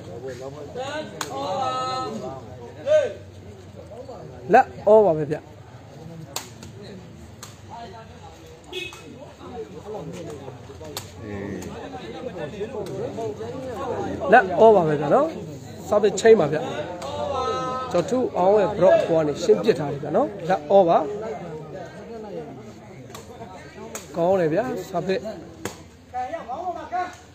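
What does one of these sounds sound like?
A crowd of spectators chatters and cheers loudly outdoors.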